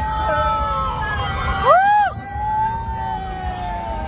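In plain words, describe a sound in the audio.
A young man laughs heartily up close.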